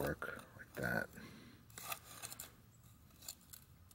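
A sharpening stone scrapes against a metal edge.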